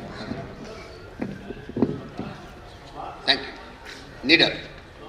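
An elderly man reads out poetry calmly through a microphone.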